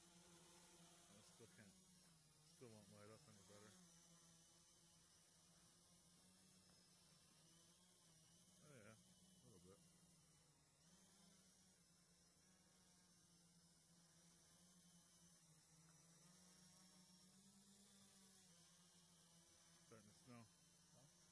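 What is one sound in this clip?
An electric quadcopter's propellers hum as it hovers, the pitch wavering up and down.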